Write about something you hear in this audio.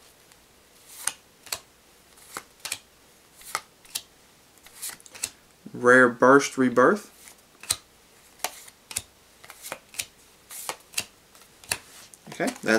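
Trading cards flick and snap as they are shuffled through a stack.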